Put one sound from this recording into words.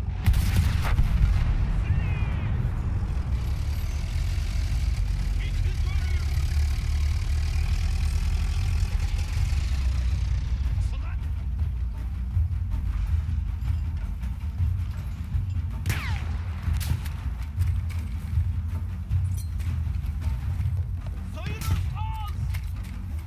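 A low, steady rumble of battle goes on throughout.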